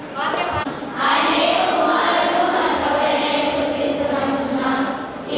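A group of women sing together.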